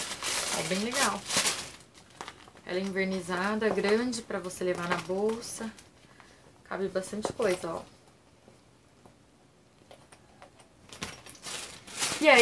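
A plastic pouch crinkles and rustles in hands.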